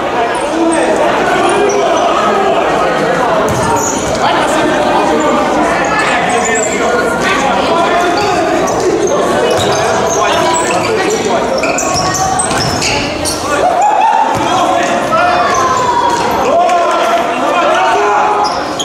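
Players' shoes squeak sharply on a hard court in a large echoing hall.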